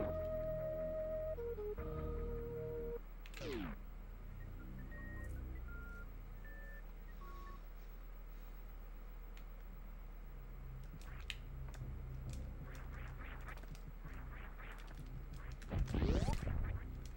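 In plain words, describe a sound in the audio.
Electronic game music plays in short beeping tones.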